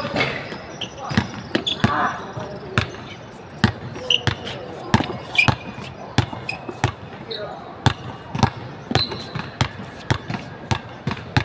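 A basketball bounces repeatedly on a hard outdoor court.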